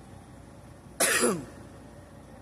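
A man coughs once, close by.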